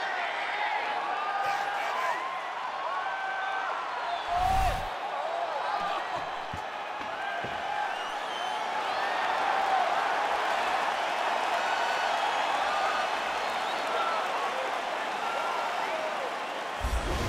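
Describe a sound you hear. A large crowd cheers and whistles throughout in a big echoing arena.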